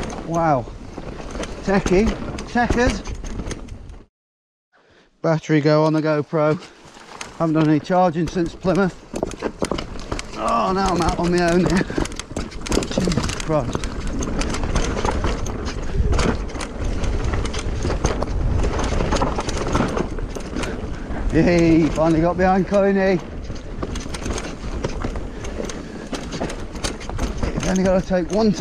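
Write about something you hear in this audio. Bike tyres rumble and crunch over a rough dirt trail.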